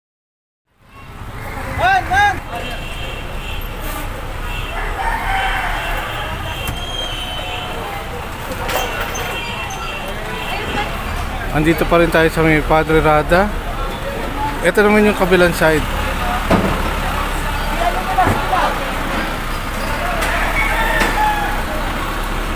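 A busy market crowd murmurs and chatters around.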